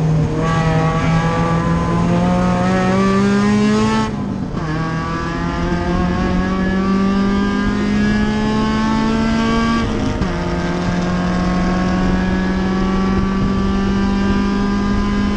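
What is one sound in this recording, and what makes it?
Wind and road noise rush steadily through the cabin.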